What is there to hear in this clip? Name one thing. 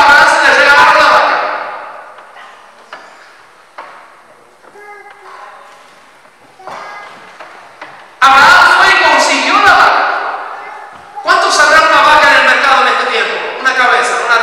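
A man speaks with animation into a microphone through loudspeakers in a large echoing hall.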